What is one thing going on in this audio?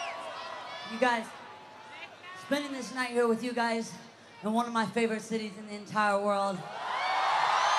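A young woman sings loudly through a microphone over an amplified sound system.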